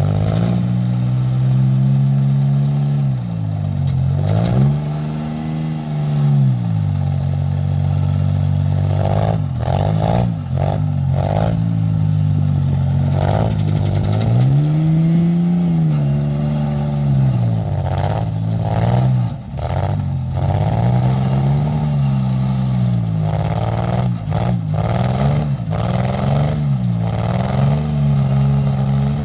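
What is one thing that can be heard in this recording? A small engine drones steadily, its pitch rising and falling as it revs.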